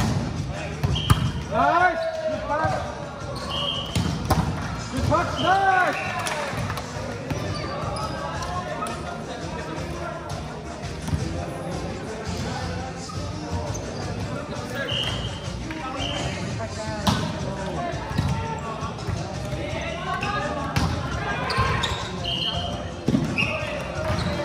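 Shoes squeak sharply on a hard court in a large echoing hall.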